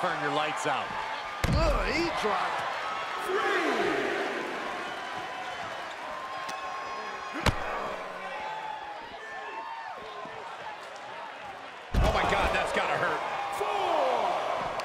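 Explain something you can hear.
A crowd cheers and shouts loudly throughout.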